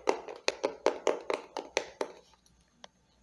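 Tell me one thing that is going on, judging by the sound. A young woman taps her fingernails rapidly on a plastic phone case close to the microphone.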